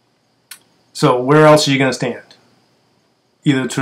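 A middle-aged man speaks calmly and close up, into a microphone.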